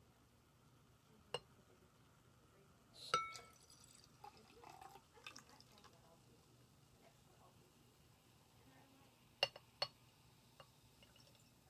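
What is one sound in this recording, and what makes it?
Soda pours and fizzes into a glass.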